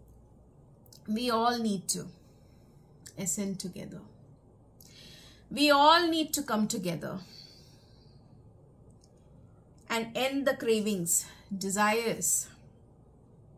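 A middle-aged woman speaks calmly and close by, in short phrases with pauses.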